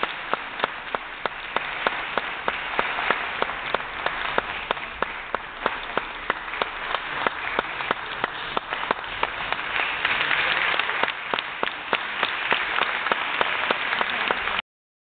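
An audience claps in a steady rhythm in a large hall.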